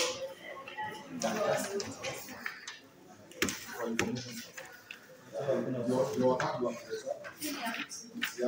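Several men and women talk among themselves nearby.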